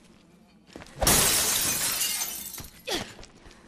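Glass smashes and shatters loudly.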